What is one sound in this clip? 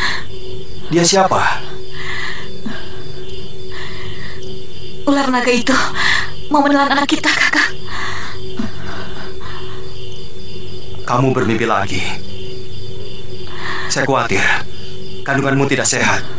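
A young woman speaks quietly and tensely up close.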